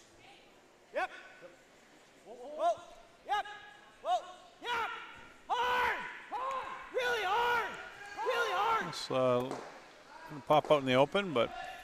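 Men shout loudly and repeatedly across an echoing arena.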